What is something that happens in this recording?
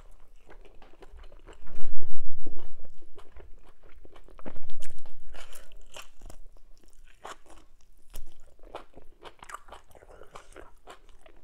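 Fingers squish and scoop through soft wet food.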